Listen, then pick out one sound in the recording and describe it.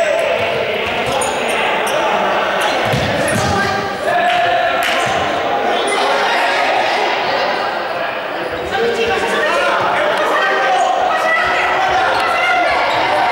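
Young people shout and call out excitedly in a large echoing hall.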